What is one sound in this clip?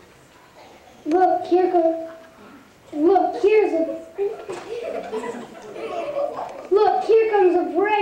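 A young boy speaks with animation into a microphone over a loudspeaker.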